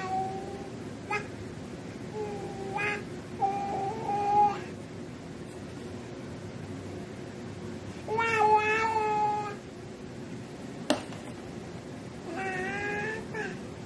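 A baby babbles and coos in high, sing-song sounds close by.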